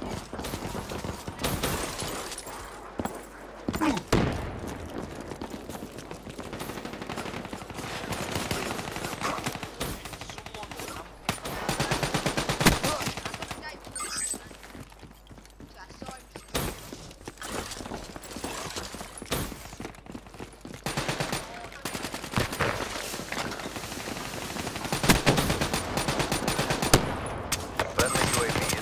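Automatic gunfire crackles in rapid bursts.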